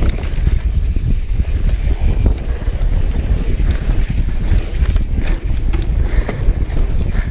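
Wind rushes loudly past a close microphone.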